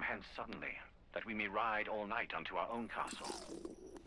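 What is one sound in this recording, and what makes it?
A young man talks casually into a microphone, close by.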